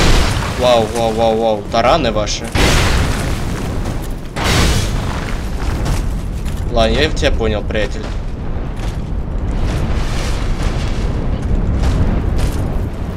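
Heavy blades swing and strike with loud metallic whooshes.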